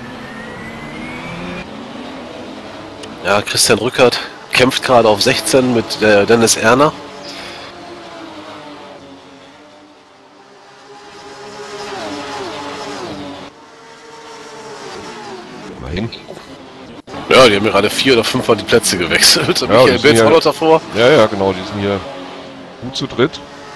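Racing car engines roar and whine as they rev up and down through the gears.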